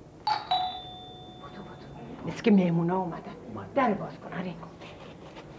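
An older woman speaks with animation close by.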